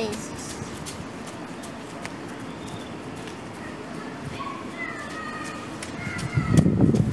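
Wind rustles palm fronds outdoors, gusting louder near the end.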